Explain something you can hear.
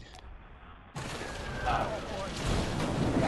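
A man shouts excitedly inside a car.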